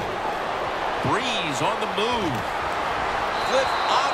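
Football players collide with thuds on a tackle.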